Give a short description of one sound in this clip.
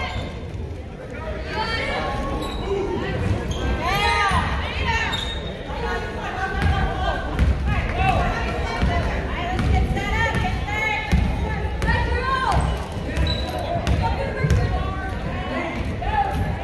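Sneakers squeak on a hardwood court in an echoing gym.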